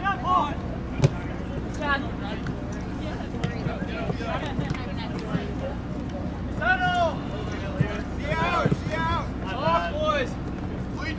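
A soccer ball thumps off a kick.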